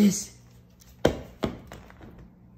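A plastic toy ball bounces and clatters on a hard floor.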